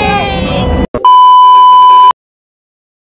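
A steady high beep sounds.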